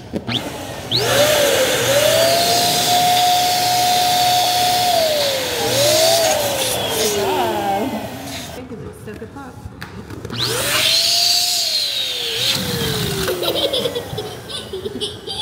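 An electric balloon pump whirs loudly in bursts.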